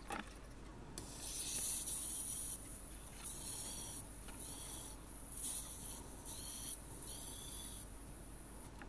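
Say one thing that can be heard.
An electric welder crackles and hisses in short bursts.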